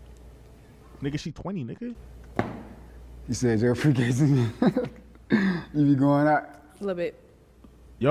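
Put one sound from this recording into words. A young man answers calmly.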